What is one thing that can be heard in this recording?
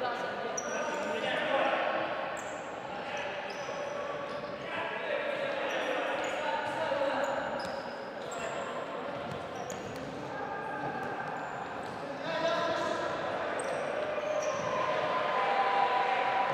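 Sneakers squeak sharply on a hard floor again and again.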